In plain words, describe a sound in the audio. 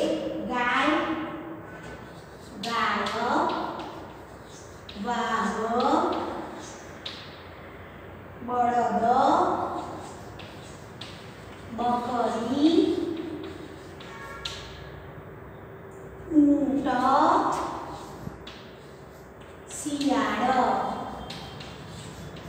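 A young woman reads out slowly in short phrases, close by.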